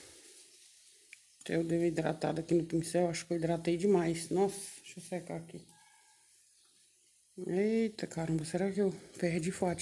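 A brush scrapes and dabs on a ceramic saucer.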